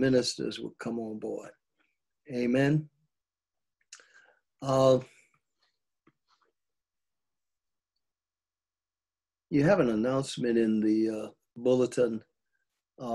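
An elderly man speaks calmly, with pauses, close to a microphone.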